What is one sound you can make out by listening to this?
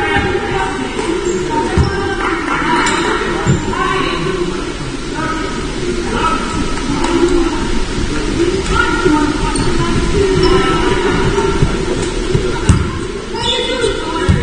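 Players' voices call out across a large echoing hall.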